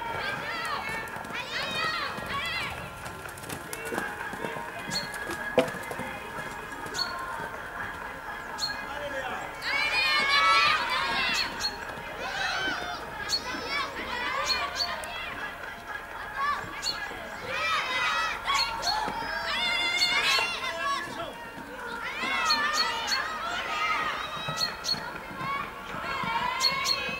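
A horse canters with soft hoofbeats on sand.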